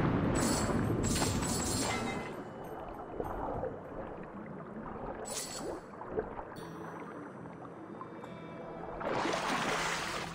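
Water bubbles and swirls as a swimmer moves underwater.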